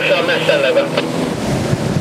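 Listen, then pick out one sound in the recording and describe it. Small waves break and wash onto the shore.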